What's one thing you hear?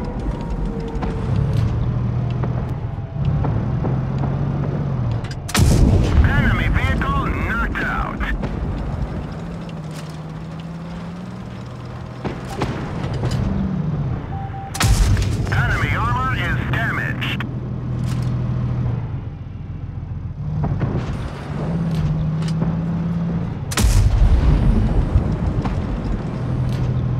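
A tank engine rumbles and drones steadily.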